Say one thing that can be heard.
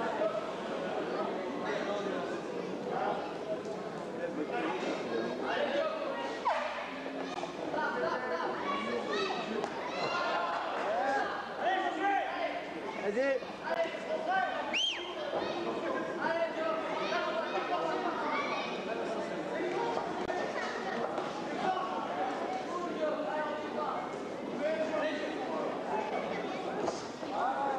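A crowd of men and women shouts and cheers throughout.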